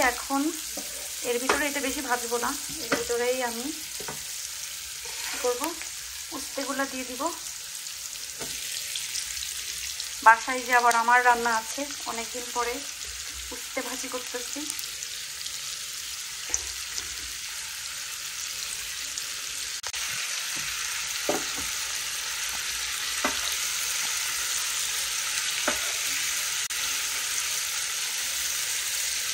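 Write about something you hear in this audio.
Vegetables sizzle softly in a hot pan.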